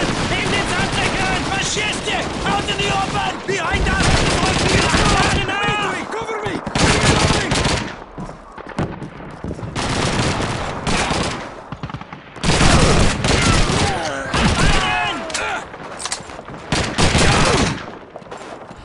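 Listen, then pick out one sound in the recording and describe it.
A submachine gun fires rapid bursts that echo in rooms.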